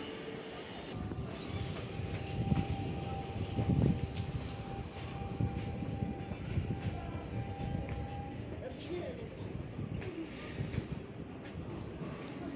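A train rolls past with wheels clacking over the rails.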